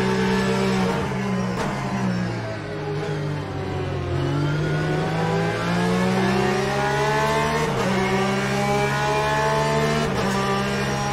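Gear shifts click with sharp jolts in the engine note.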